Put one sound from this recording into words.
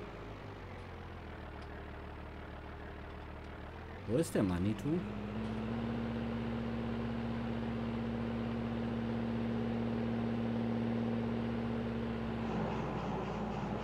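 A tractor engine hums steadily at idle.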